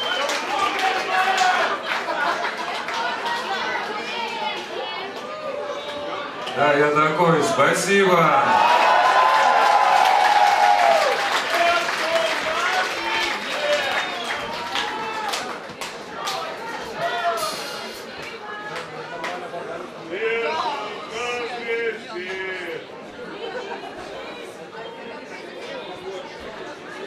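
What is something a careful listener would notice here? A band plays loud live rock music with electric guitars and drums.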